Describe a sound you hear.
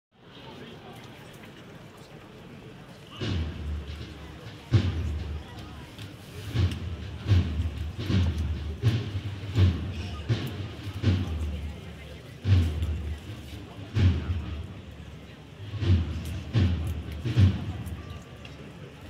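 A crowd murmurs quietly in the street.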